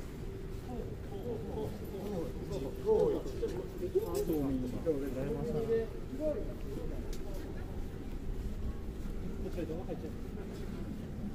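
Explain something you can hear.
Several men and women chat casually nearby.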